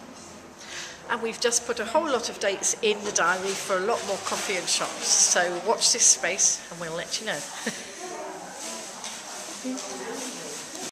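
A middle-aged woman speaks warmly and cheerfully close by.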